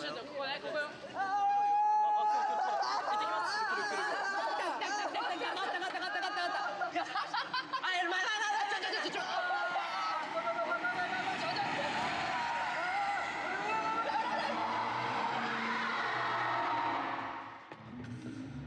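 Young men talk and laugh loudly with animation, heard through a playback.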